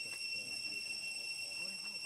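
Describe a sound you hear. A baby monkey squeaks softly.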